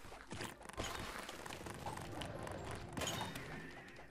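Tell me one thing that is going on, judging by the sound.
Video game coins chime as they are picked up.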